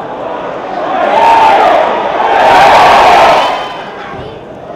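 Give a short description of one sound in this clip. A crowd roars loudly in an open stadium.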